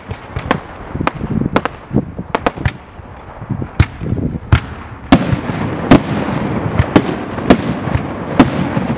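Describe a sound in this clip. Fireworks burst with sharp, echoing bangs, one after another.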